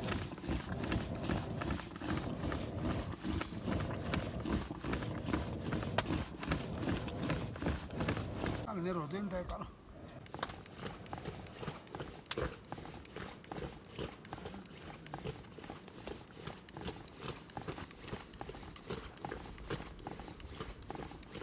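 A wooden churn plunger thumps and sloshes in a steady, quick rhythm.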